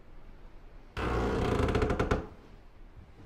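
A wooden door swings open with a loud creak.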